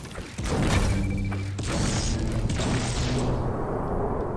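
A pickaxe strikes a wall with sharp thuds.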